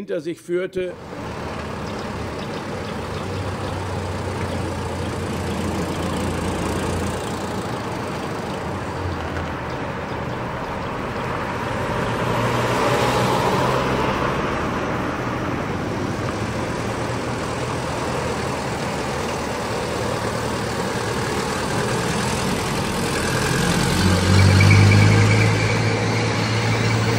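An old truck's engine rumbles steadily and grows louder as it drives past.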